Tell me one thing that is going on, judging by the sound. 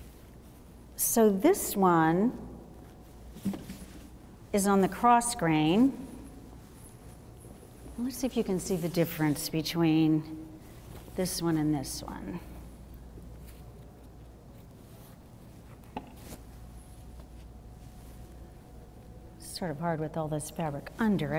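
A woman speaks calmly and clearly into a clip-on microphone.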